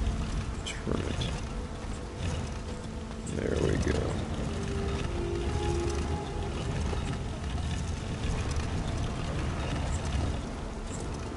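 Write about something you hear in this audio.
Heavy rain falls steadily outdoors.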